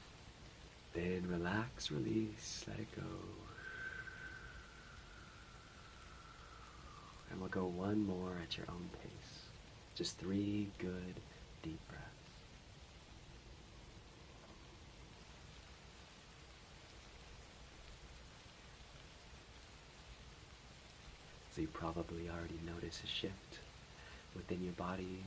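A young man speaks calmly and slowly into a nearby microphone, with long pauses.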